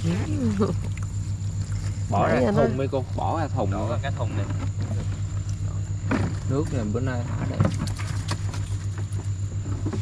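A boat engine throbs steadily.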